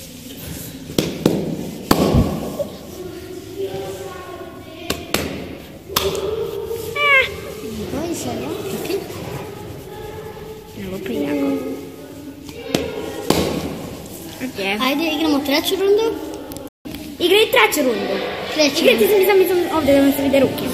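A hand slaps down on a hard floor.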